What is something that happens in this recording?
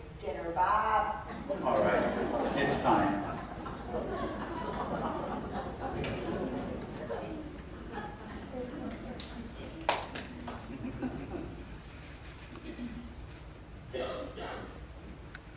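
A man speaks on a stage in a large echoing hall.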